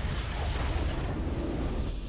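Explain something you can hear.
A video game victory fanfare sounds.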